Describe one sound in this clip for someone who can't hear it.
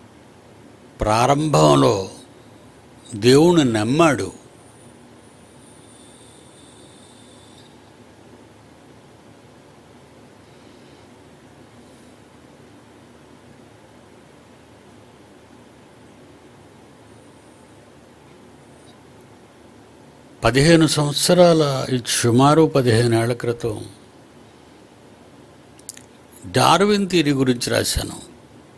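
An elderly man speaks slowly and deliberately into a close microphone, with long pauses.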